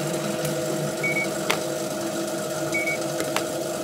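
A checkout scanner beeps briefly.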